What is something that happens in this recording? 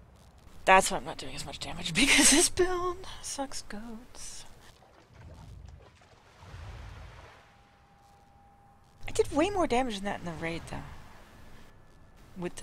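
Water sloshes softly as someone wades through it.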